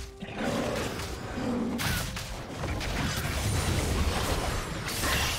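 Magic spells whoosh and crackle in a video game fight.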